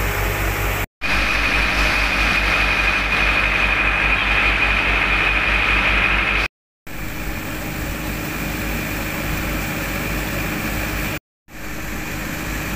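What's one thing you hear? Water gushes and splashes out of a hose.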